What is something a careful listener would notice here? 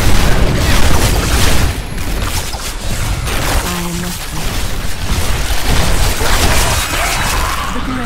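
Game spell blasts and hits crash and crackle rapidly.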